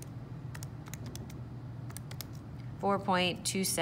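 Calculator keys click softly.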